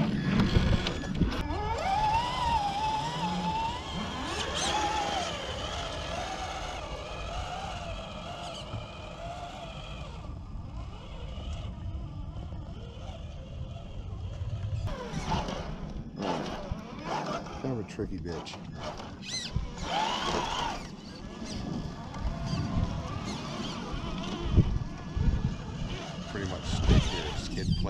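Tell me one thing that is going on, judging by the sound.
Plastic tyres crunch and scrape over rocks and dry grass.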